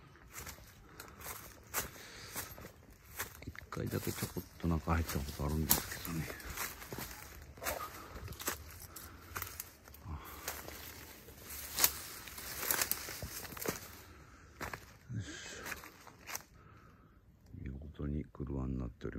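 Footsteps crunch and rustle through dry leaves and undergrowth.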